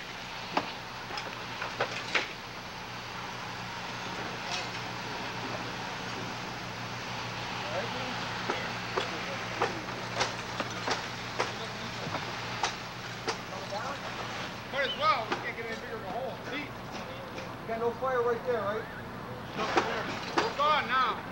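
Tools knock and bang sharply against a roof, again and again.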